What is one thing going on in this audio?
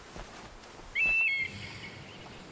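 An eagle lets out a sharp screech.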